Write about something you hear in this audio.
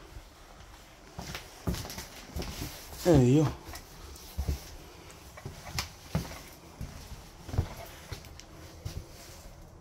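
Footsteps crunch on a gritty, littered floor.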